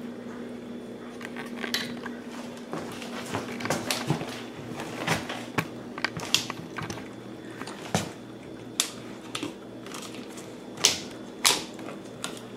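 A small dog's claws click and scrape on a hard floor.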